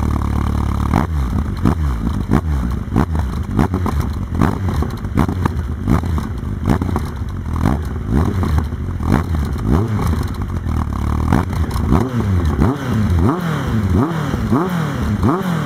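A motorcycle engine revs up and down again and again, loud and close.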